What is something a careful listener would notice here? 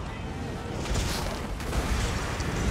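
A bolt of lightning cracks and booms.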